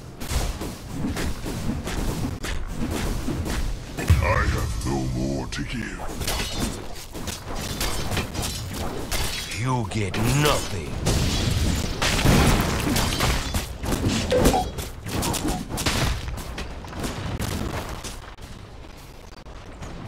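Clashing blows and bursts of magic sound in a video game fight.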